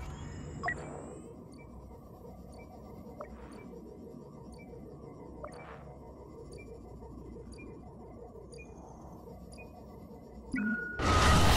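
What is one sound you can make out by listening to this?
Soft beeps sound at steady intervals.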